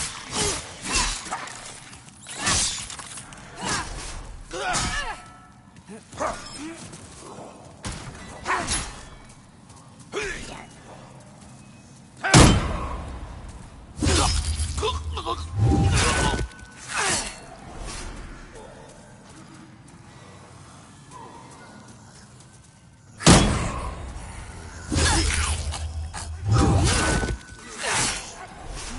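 Footsteps crunch on loose gravel and stone.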